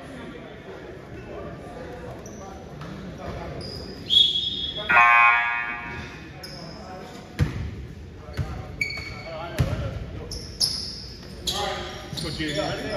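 Young players call out to each other across an echoing gym.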